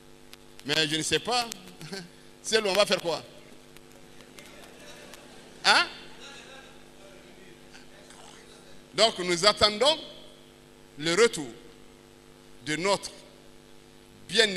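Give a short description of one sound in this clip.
A middle-aged man speaks loudly and with animation through a microphone, in short bursts with pauses.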